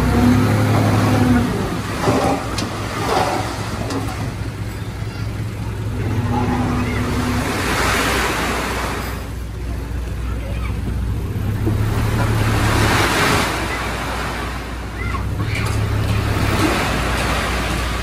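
A truck engine idles and rumbles steadily.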